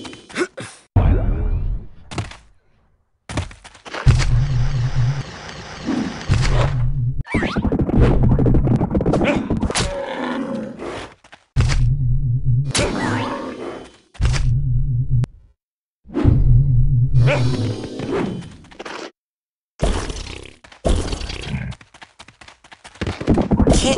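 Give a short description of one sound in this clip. A large creature charges about with heavy, booming thuds.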